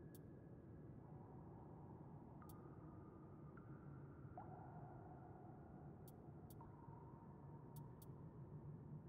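Soft electronic menu tones chime as a selection changes.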